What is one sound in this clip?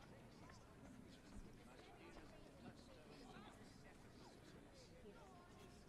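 A crowd of men and women murmurs and chatters in the background.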